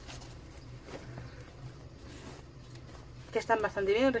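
A plastic bag rustles and crinkles in someone's hands.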